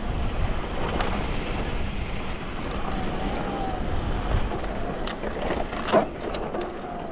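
A bicycle rattles and clanks over rocks and roots.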